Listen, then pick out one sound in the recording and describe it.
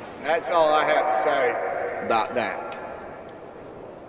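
A man speaks loudly into microphones, his voice booming through loudspeakers and echoing outdoors.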